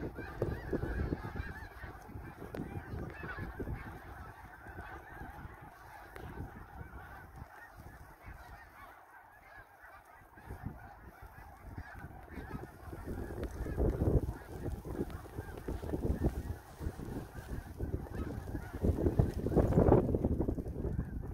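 A large flock of geese honks and calls high overhead.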